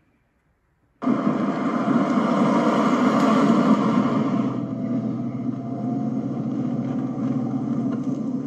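A car engine hums steadily as a car drives slowly.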